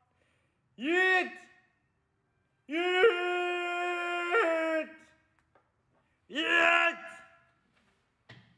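A young man shouts in long, drawn-out calls close by.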